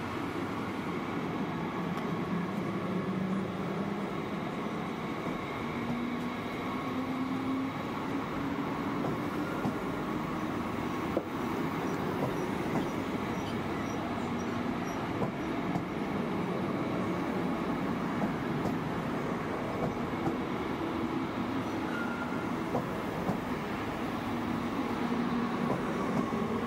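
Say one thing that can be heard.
A train rolls slowly past with a steady rumble.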